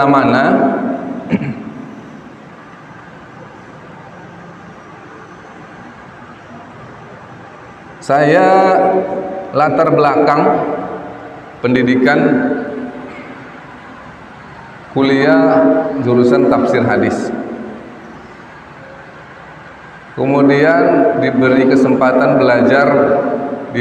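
A man speaks calmly through a microphone, in bursts with long pauses, in a slightly echoing room.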